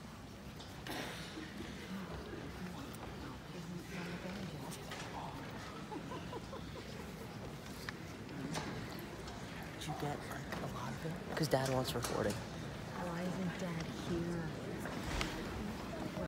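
A large choir sings in an echoing hall.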